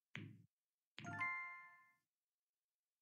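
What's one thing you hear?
A bright chime rings as a tube fills with one colour.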